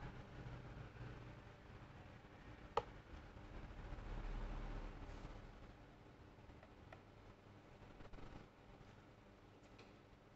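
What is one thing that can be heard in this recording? Milk pours softly into a cup.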